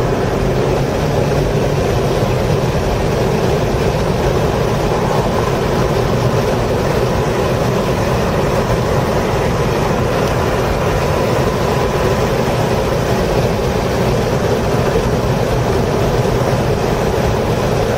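Tyres hum and rumble on the track.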